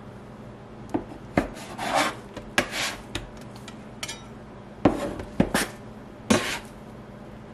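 A metal scraper taps and scrapes against a countertop.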